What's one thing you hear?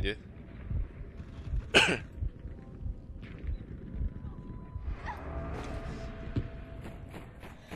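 Muffled gunshots and explosions thump in a game.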